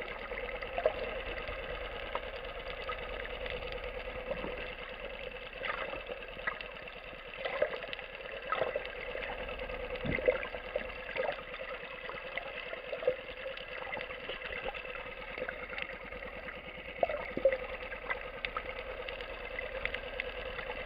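Water rushes and murmurs steadily underwater, with soft crackles and clicks.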